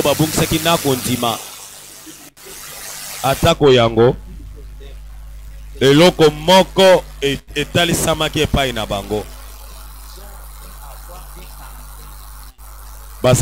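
A middle-aged man speaks into a microphone in a slow, earnest preaching manner, with pauses.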